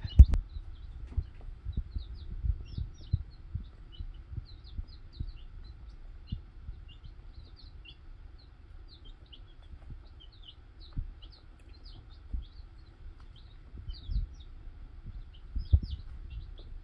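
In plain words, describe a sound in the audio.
Chicks peck and scratch at litter with soft taps.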